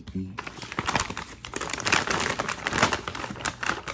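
A paper bag crinkles and rustles close by.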